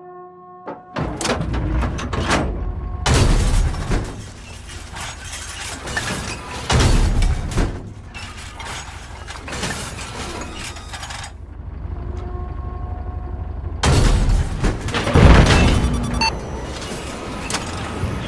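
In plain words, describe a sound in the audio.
A heavy engine rumbles steadily.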